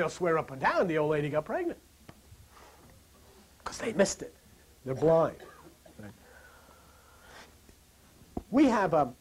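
An older man lectures with animation, pausing between phrases.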